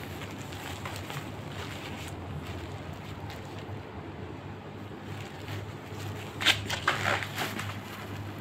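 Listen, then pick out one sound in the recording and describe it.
A plastic-backed pad rustles and crinkles.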